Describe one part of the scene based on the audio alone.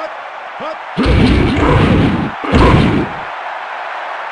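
Football players collide in a pileup with heavy thuds.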